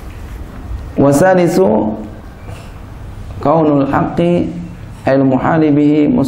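A man speaks into a microphone in a loud, chanting voice, with pauses between phrases.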